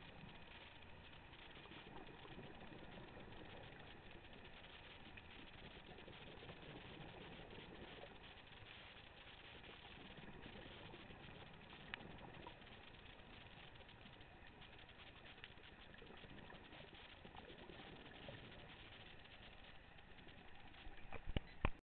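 Water rushes and hisses steadily underwater.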